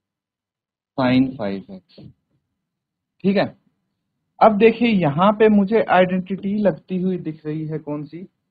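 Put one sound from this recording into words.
A man speaks calmly and explains through a microphone.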